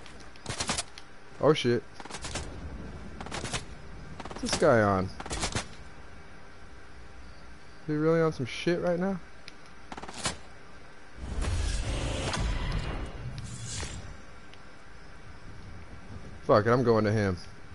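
Footsteps thud on a wooden roof.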